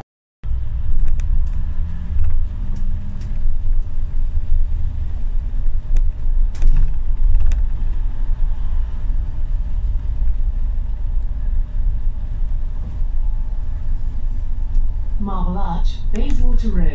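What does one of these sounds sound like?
A vehicle's engine and tyres rumble steadily as it drives along.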